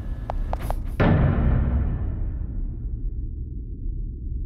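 A deep game sound booms and slowly fades.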